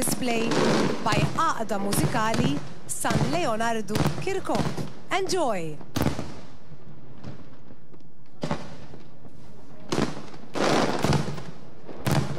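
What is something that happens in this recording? Fireworks crackle as they burst.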